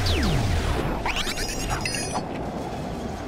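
A magical sparkle chimes and twinkles.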